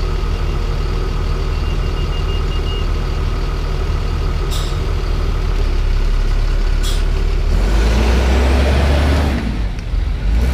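A bus engine rumbles close by, then pulls away.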